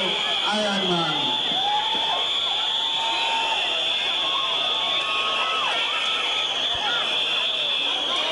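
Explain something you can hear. A steel band plays a lively tune loudly outdoors.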